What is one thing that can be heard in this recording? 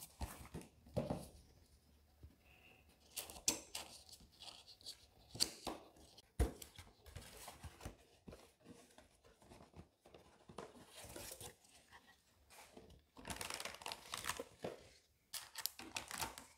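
Hands rub and tap against a cardboard box.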